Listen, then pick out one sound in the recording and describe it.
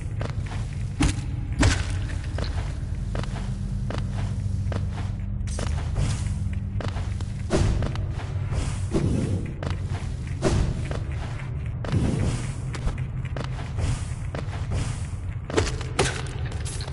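An explosion bursts with a deep boom.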